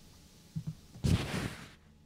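A microphone is bumped and rustles as it is handled.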